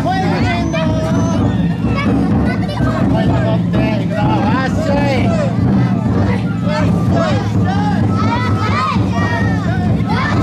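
A crowd of children chant and shout together outdoors.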